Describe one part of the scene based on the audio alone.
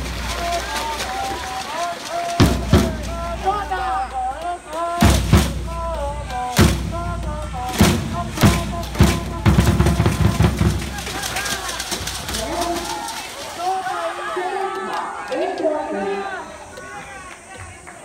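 A crowd of young men chants and cheers loudly outdoors.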